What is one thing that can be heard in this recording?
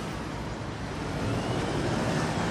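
A car engine hums as the car pulls away.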